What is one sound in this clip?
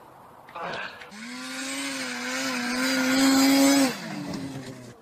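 A snowmobile engine drones and then cuts off.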